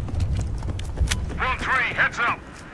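A rifle fires sharp shots close by.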